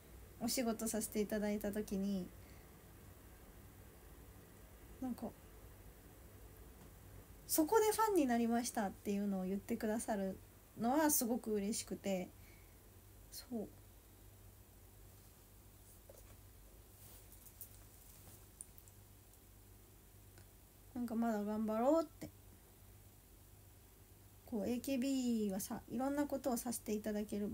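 A young woman talks calmly and softly close by, in short bursts with pauses.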